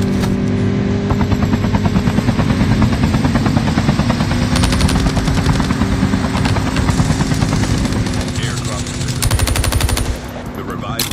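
A helicopter's rotor thumps rapidly and steadily nearby.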